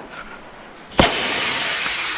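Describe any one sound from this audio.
A flare bursts alight with a sharp pop.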